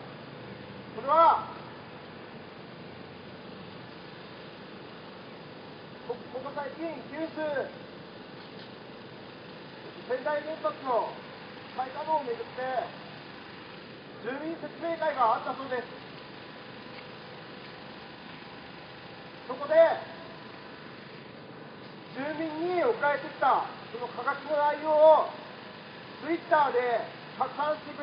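A man speaks loudly in short bursts through a microphone and loudspeaker outdoors.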